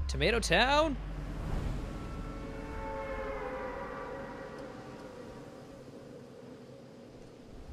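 Wind rushes steadily as a game character skydives.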